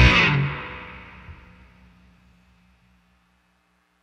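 A drum kit's cymbals crash and ring out slowly.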